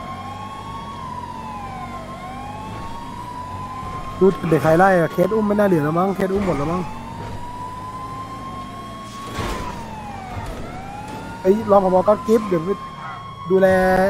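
A police siren wails, rising and falling in slow sweeps.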